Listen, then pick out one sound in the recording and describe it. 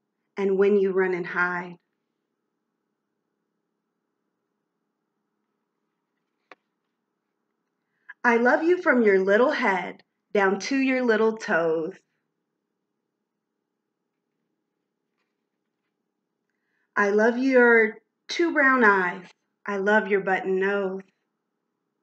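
A young woman reads aloud close by.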